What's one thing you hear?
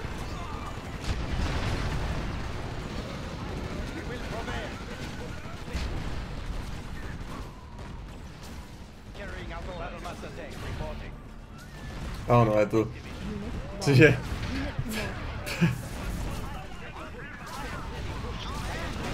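Explosions boom and rumble again and again.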